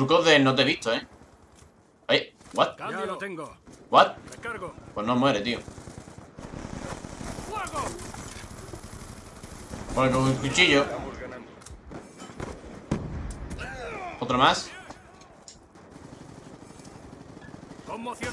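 Gunshots crack from a game in quick bursts.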